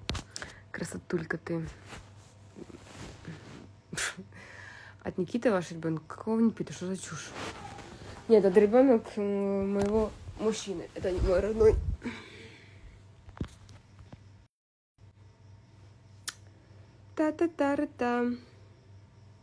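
A young woman talks close to a phone microphone, casually and softly.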